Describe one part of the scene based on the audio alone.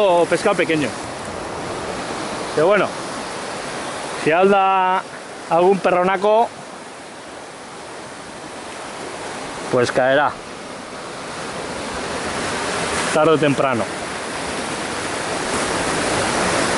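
Waves crash and wash over rocks close by.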